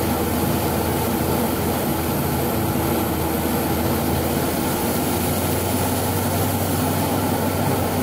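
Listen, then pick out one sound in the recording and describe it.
A rear-mounted six-cylinder diesel engine drones, heard from inside a moving city bus.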